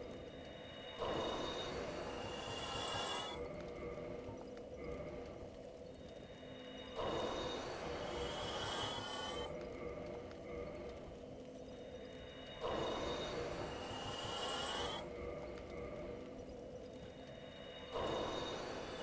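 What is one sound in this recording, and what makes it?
A soft magical whoosh swells up and fades, several times.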